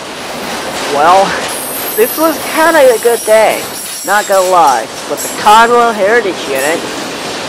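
Train wheels squeal loudly and shrilly on the rails.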